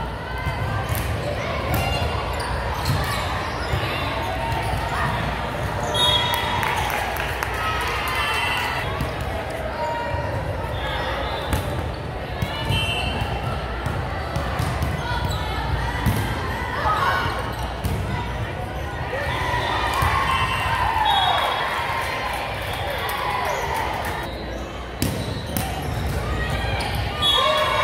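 Volleyballs thump as players hit them in a large echoing gym.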